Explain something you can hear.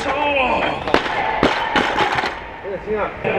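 A heavy barbell crashes down onto the floor and rattles.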